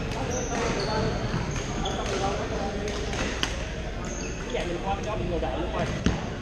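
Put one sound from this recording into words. A crowd of people chatters in the background of an echoing hall.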